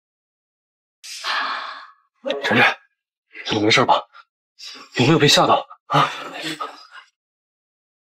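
A young man speaks softly and with concern.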